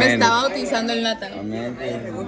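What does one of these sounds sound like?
A young woman speaks close up.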